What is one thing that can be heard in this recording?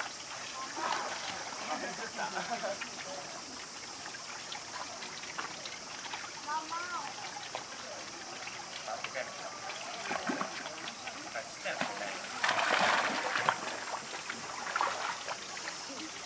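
A monkey paddles through water with soft splashing.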